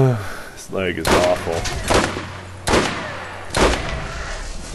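Sniper rifle shots ring out with sharp cracks.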